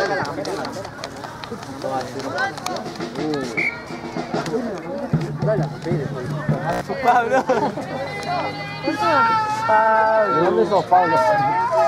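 Spectators chatter and cheer close by, outdoors.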